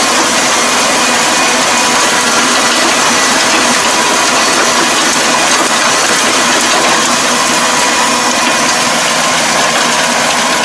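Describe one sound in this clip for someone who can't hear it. A rotary tiller churns through wet mud.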